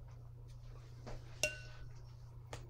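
A paintbrush clinks against a metal paint box.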